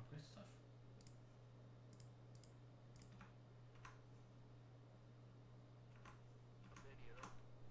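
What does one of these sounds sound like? Menu clicks tick sharply, one after another.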